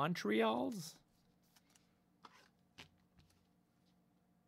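Trading cards flick and slap against each other as they are shuffled.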